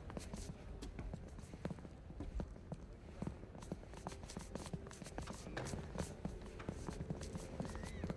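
Hard-soled shoes step on stone stairs in a large echoing hall.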